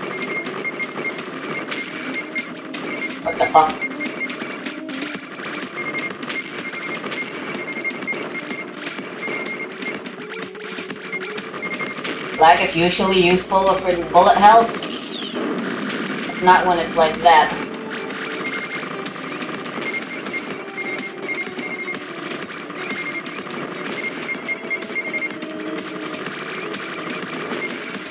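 Upbeat electronic game music plays steadily.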